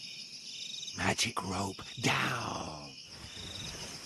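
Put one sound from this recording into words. A man speaks in a low, commanding voice.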